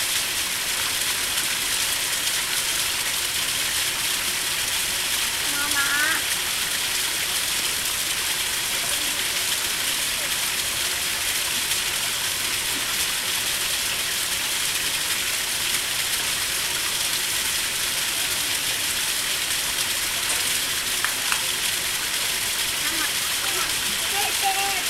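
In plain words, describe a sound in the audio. Water trickles steadily into a pond.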